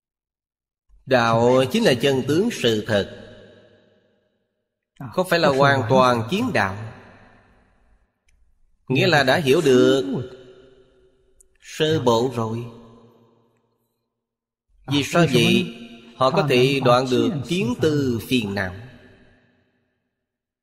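An elderly man speaks calmly and slowly into a microphone, in short phrases with pauses.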